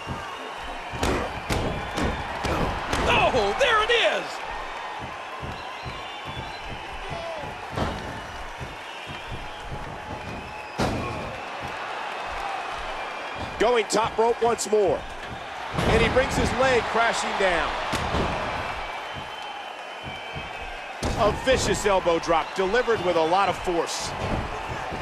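Bodies slam onto a wrestling mat with heavy thuds.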